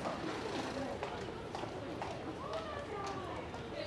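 A van drives past on a busy street.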